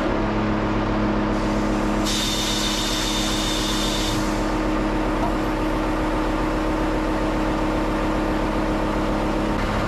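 Hydraulic lifting arms whine as they move.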